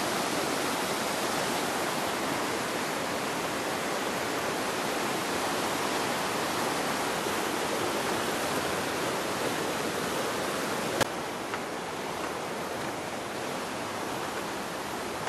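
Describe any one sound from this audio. A river rushes loudly over rocks nearby.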